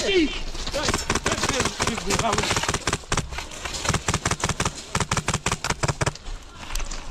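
An airsoft rifle fires a rapid string of sharp clicking shots.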